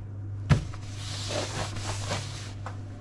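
Paper towel rustles and crinkles under a hand.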